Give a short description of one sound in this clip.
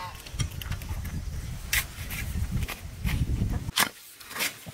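A pickaxe strikes hard dry earth again and again.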